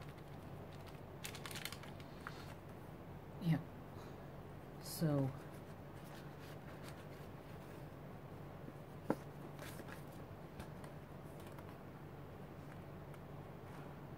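A stiff plastic sheet rustles and clicks softly as it is handled.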